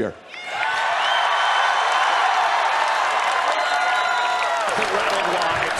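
A large crowd applauds.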